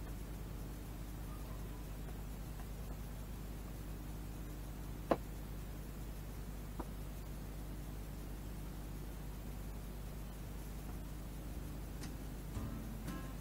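Yarn rustles softly as it is pulled through knitted fabric.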